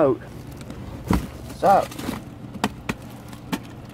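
A bag rustles and thumps as hands move it.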